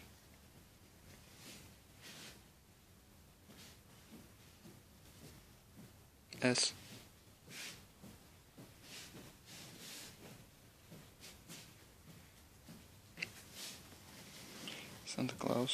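Cloth rustles softly as clothes are handled and shuffled.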